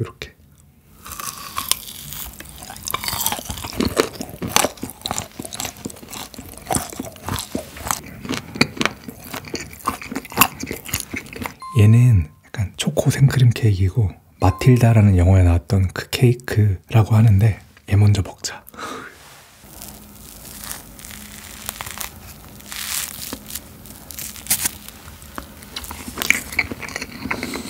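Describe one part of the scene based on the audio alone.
A young man chews food with soft, crunchy mouth sounds close to a microphone.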